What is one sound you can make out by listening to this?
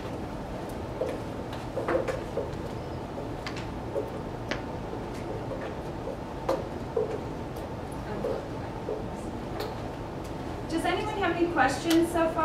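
Dishes and utensils clink on a table.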